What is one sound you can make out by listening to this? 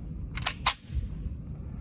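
Metal parts of a pistol click as it is handled.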